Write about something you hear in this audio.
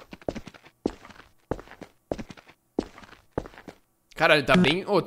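A stick knocks sharply on pavement, over and over.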